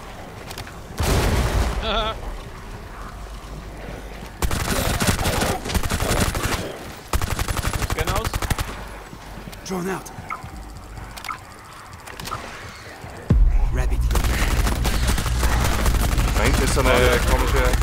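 Rapid gunfire bursts loudly and close by.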